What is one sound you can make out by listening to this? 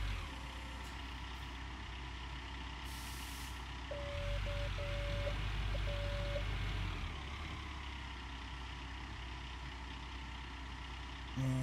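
An excavator engine rumbles steadily, revving louder for a few seconds.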